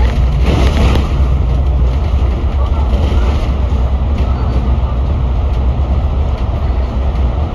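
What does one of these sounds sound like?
Traffic roars and echoes inside a tunnel.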